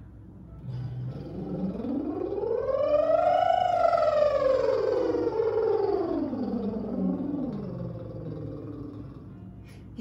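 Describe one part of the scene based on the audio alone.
A woman sings one long vowel that glides up and then back down, close by in a small room.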